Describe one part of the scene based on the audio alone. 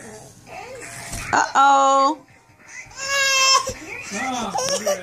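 A baby babbles and squeals.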